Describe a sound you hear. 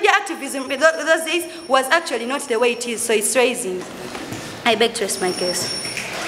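A young woman speaks with animation into a microphone in an echoing room.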